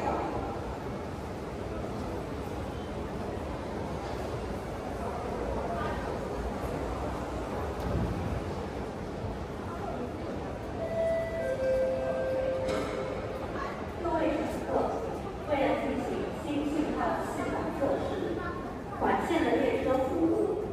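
A steady low hum fills the air.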